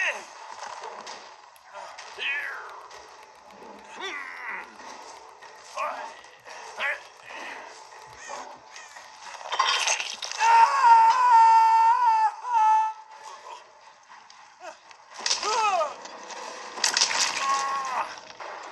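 Game sounds play from a handheld game console's small built-in speakers.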